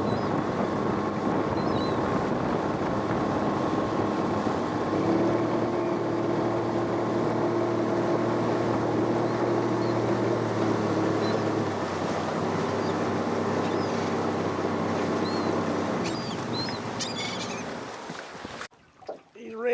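Choppy water splashes against a boat hull.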